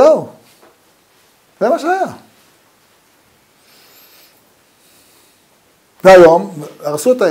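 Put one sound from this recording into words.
An elderly man speaks calmly in phrases with pauses, close by.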